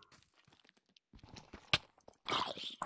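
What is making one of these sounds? A pickaxe chips at stone with short knocks.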